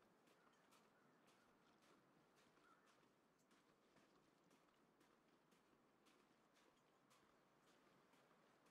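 Footsteps crunch steadily through snow at a walking pace.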